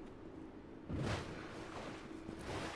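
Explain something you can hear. Water splashes.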